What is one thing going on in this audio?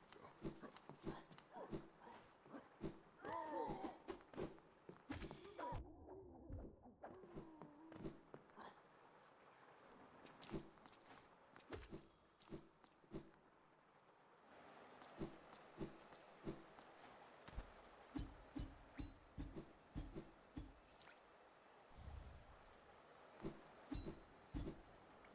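Light footsteps patter quickly and steadily.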